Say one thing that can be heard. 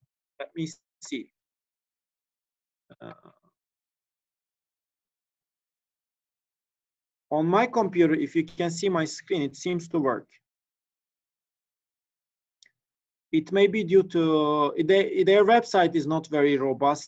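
A young man speaks calmly through a microphone, in short bursts with pauses.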